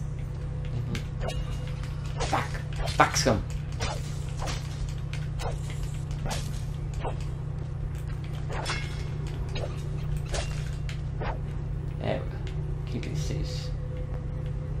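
A sword whooshes and slashes again and again.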